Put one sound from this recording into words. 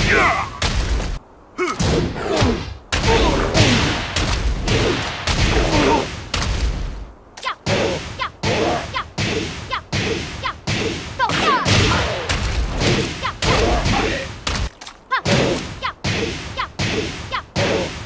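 Heavy punches and kicks land with sharp thuds, again and again.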